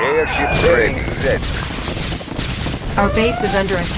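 Explosions boom as buildings are hit.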